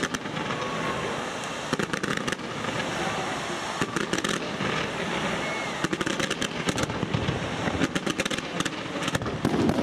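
Fireworks crackle and fizz at their launch point.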